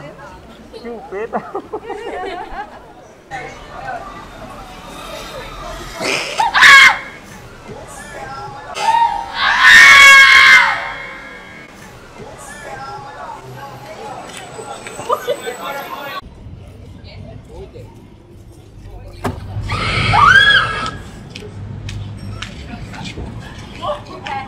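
Women talk and chatter nearby on a busy street.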